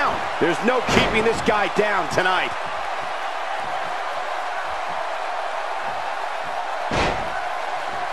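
A wrestler thuds heavily onto the mat.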